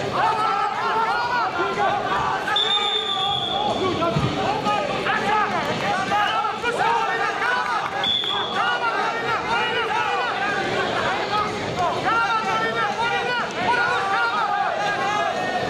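A large crowd chants and cheers loudly in a big echoing hall.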